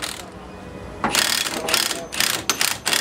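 An impact wrench rattles in short bursts.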